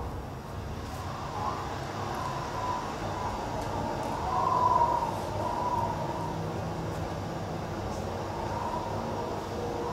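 A man sobs softly close by.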